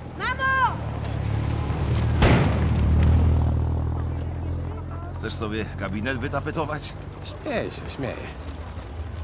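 A car engine rumbles past.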